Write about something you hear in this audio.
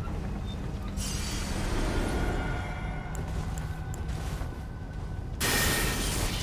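A magical blast whooshes and crackles.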